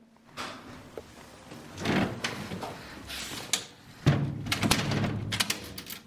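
A metal door handle rattles and clicks.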